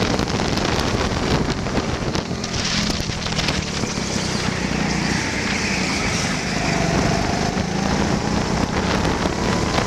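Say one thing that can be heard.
Other go-kart engines whine nearby.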